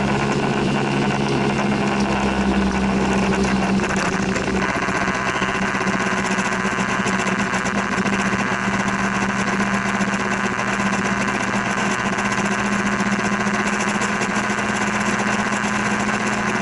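Rain patters on the windscreen.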